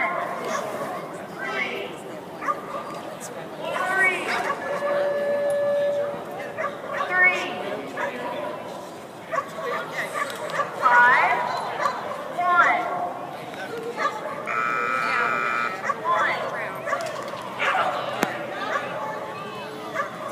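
A man calls out with animation to a dog in a large echoing hall.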